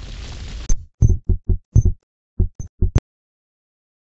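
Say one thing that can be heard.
Short menu beeps sound in quick succession.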